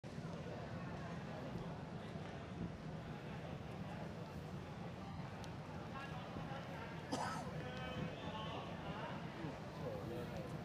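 A crowd of men and women murmurs and chatters nearby.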